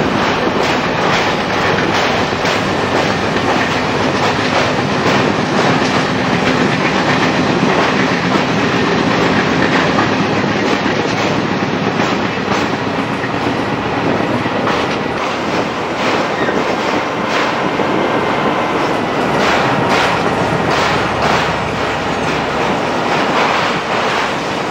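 An electric locomotive's motor hums and whines.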